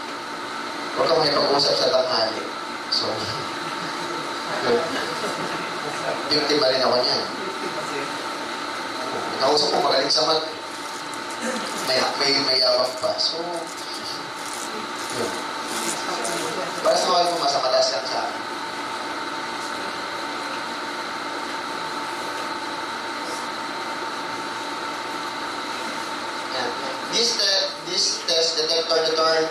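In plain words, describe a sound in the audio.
A man speaks into a microphone, lecturing with animation over a loudspeaker in a room with echo.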